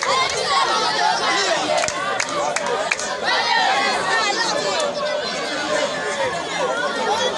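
A large crowd outdoors cheers and shouts excitedly.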